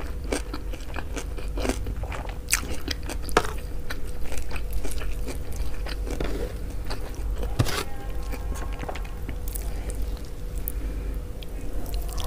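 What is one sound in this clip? Fingers squish and mash soft rice close up.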